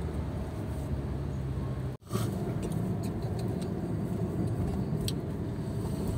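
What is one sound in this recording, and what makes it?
Road noise rumbles steadily inside a moving car.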